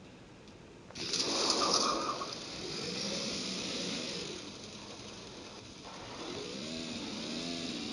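A car engine revs and roars as a vehicle drives off.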